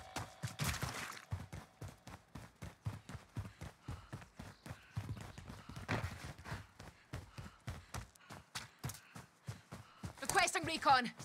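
Quick footsteps run over the ground.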